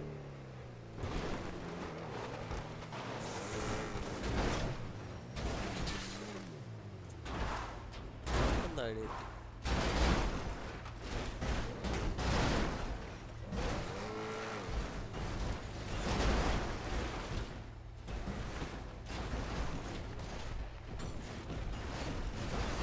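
A car crashes and tumbles down a rocky slope with repeated thuds.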